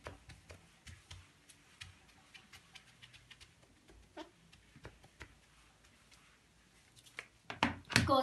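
A felt eraser rubs across a whiteboard.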